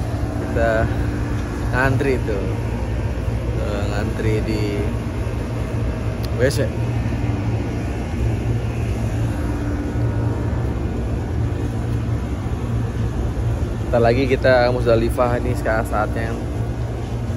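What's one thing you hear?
A young man speaks close to the microphone, talking casually with pauses.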